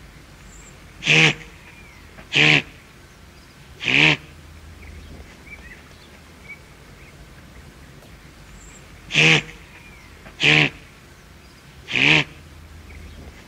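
A guanaco gives short, shrill, bleating calls again and again.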